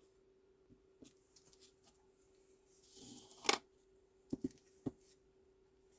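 Clear plastic stamps clack and tap on a table.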